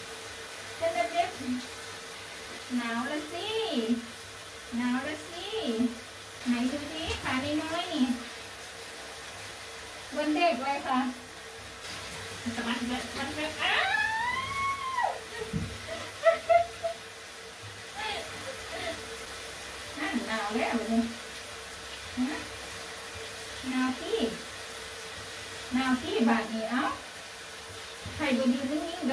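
Water splashes in a small tub.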